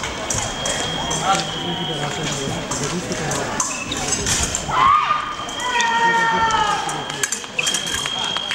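Shoes squeak and thud on a hard floor.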